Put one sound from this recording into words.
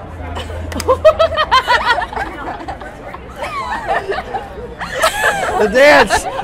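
Young women laugh and shout with excitement close by.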